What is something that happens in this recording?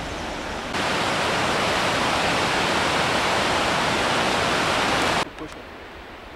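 A mountain creek rushes over rocks outdoors.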